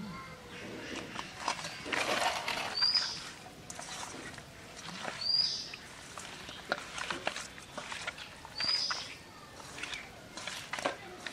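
Hands squelch and rub while mixing wet fish in a metal bowl.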